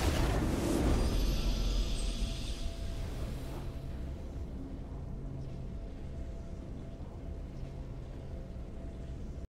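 A triumphant victory fanfare swells and then settles into a soft drone.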